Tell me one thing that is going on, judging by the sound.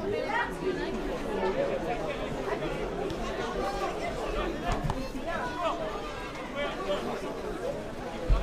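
A crowd of spectators murmurs and calls out outdoors.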